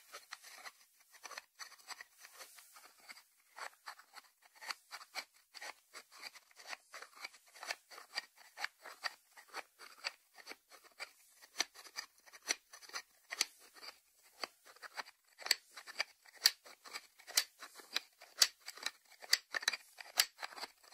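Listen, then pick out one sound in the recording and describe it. Fingertips tap on a ceramic lid.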